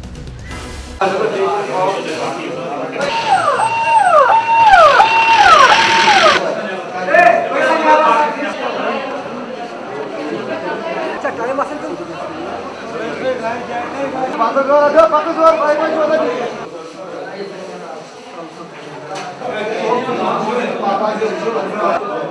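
A crowd of men talk and shout excitedly.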